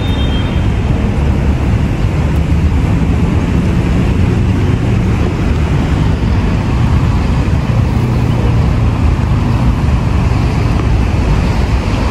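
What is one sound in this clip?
Wind rumbles and buffets loudly against the microphone outdoors.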